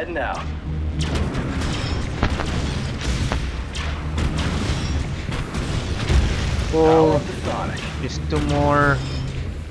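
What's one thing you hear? Guns fire in short sharp bursts.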